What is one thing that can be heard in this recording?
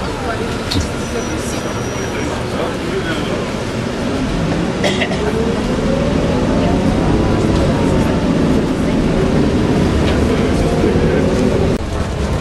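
A bus rattles and clanks over the road.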